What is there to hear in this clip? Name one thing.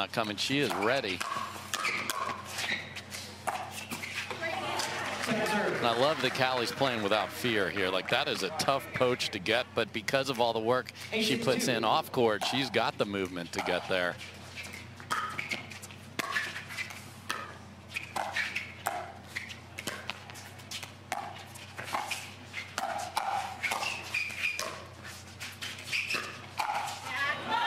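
Paddles smack a plastic ball back and forth in a quick rally.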